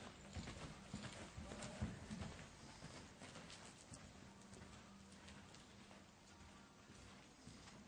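A horse's hooves thud softly on dirt as it canters.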